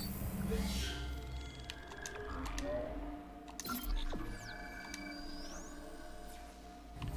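Menu chimes beep softly.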